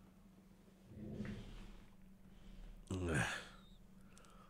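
A young man speaks briefly and quietly, close to a microphone.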